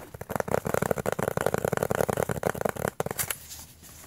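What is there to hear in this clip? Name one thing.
A disc rattles and scrapes in a case as hands handle it.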